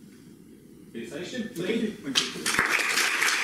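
A man speaks to an audience.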